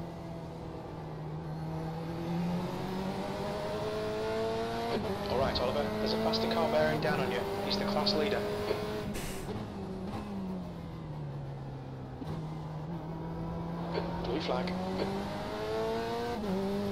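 A racing car engine roars and shifts through gears.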